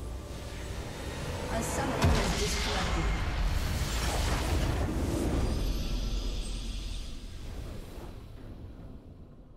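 Magic blasts crackle and boom in a hectic battle.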